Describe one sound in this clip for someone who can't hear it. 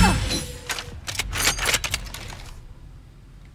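A rifle clicks and rattles as it is raised.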